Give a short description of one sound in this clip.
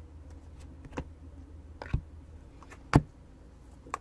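Trading cards click and flick as they are shuffled by hand.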